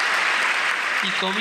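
A man speaks briefly into a microphone in a large echoing hall.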